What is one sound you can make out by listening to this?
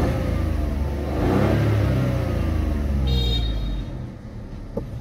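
A car engine revs up and then drops back.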